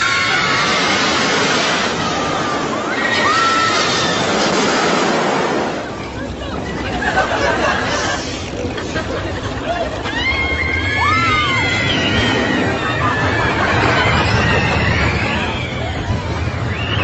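Women scream loudly on a fast ride.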